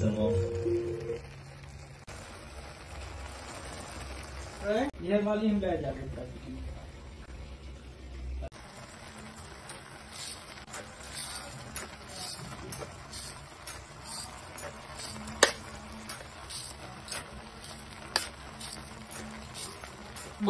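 A metal spatula scrapes and taps against a pan.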